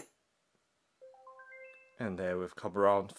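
A small speaker gives a short run of rising beeps.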